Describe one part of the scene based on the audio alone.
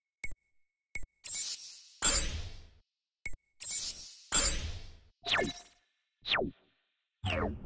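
Short electronic menu chimes and whooshes sound one after another.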